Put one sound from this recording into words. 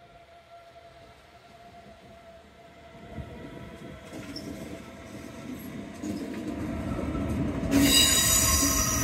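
An electric train pulls away with a rising hum.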